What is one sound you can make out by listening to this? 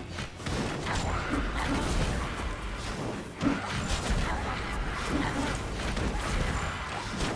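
Swords clash and magic spells burst in a busy game battle.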